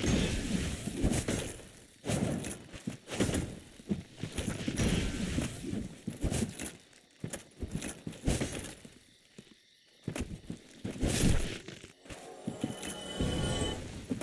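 A sword whooshes and strikes with sharp thuds.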